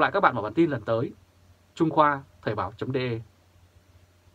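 A man speaks calmly and clearly into a close microphone.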